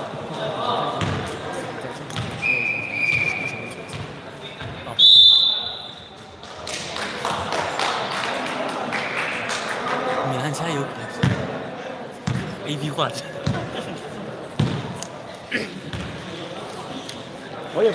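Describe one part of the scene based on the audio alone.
Sneakers squeak on a hard gym floor.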